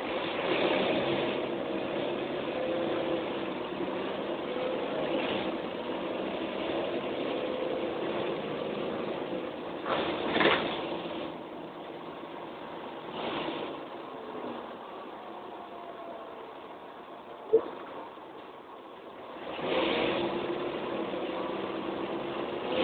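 The bus interior rattles and creaks over bumps.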